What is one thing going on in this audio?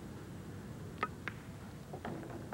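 Pool balls knock together with a hard clack.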